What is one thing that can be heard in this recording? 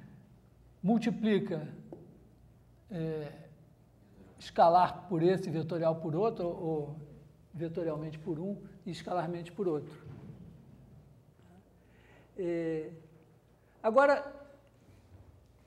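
A man lectures in a calm voice.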